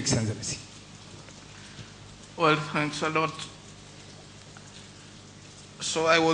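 A man speaks slowly into a microphone, with long pauses.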